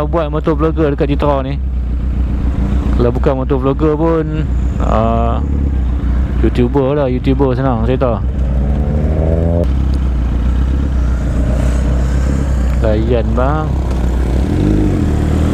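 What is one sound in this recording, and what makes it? A motorcycle engine idles nearby with a low, steady rumble.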